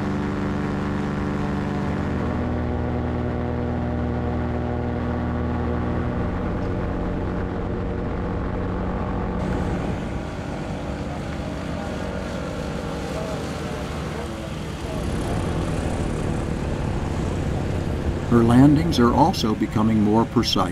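A small aircraft engine drones steadily with a buzzing propeller.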